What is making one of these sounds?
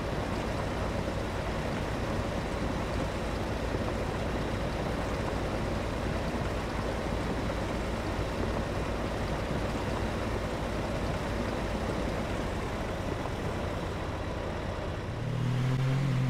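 A harvester engine roars steadily.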